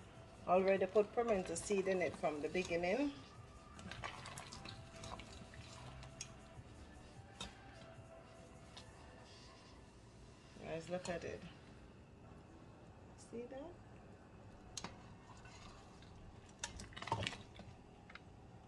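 A metal ladle stirs and clinks against a metal pot.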